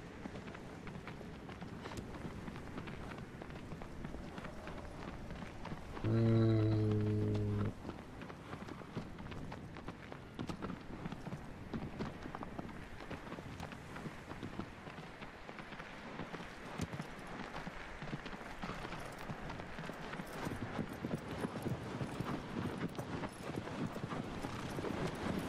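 A horse's hooves clop steadily, quickening into a gallop.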